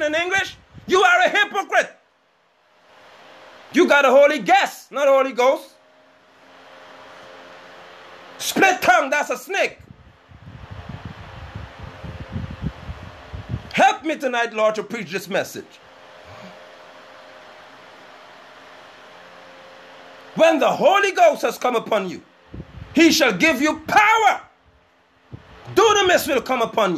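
A middle-aged man speaks calmly and close, in short bursts with pauses.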